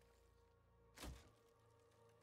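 A clawed hand thuds down onto a wooden bench.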